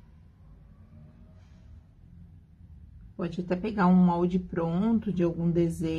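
A brush strokes softly across fabric.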